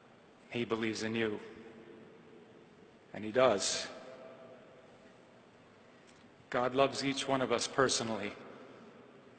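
A man speaks with emphasis through a microphone in a large echoing hall, pausing between phrases.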